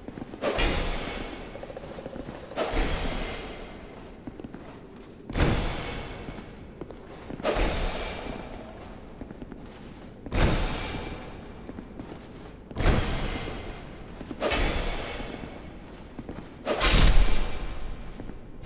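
Swords clash and slash with ringing metal impacts, again and again.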